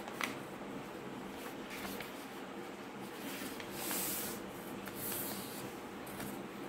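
Paper rustles and crinkles as hands fold it.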